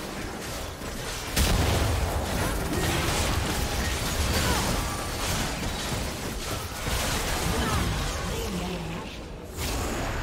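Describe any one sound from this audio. Spell effects crackle and burst in a chaotic fight.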